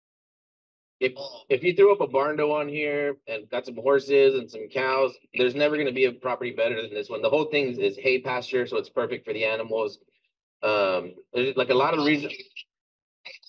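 A man speaks calmly and casually into a microphone.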